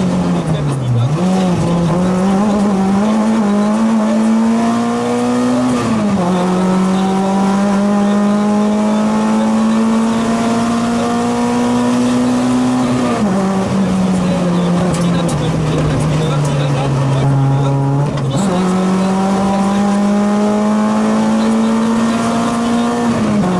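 A rally car engine roars loudly, revving up through the gears and dropping with each gear change.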